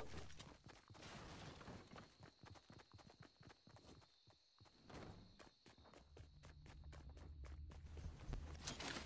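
Footsteps patter quickly across the floor.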